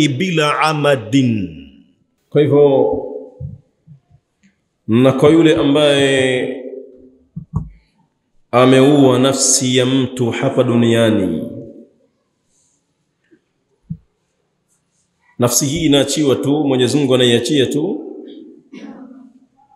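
A man speaks calmly into a close microphone, in phrases with pauses.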